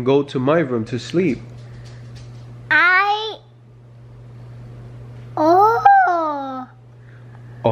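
A little girl speaks close by in a high, lively voice.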